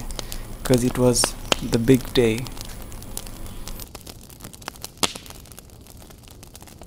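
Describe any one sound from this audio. A campfire crackles and pops.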